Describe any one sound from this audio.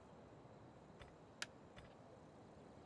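A game interface clicks softly.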